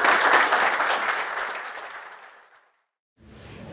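An audience applauds in a room and the clapping fades.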